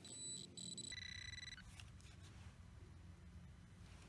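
A gloved hand scrapes and crumbles loose soil.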